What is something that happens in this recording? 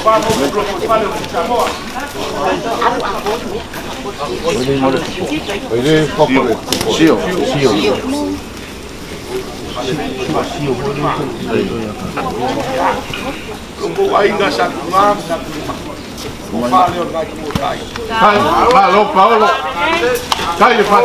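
A crowd of men and women murmur and chatter nearby.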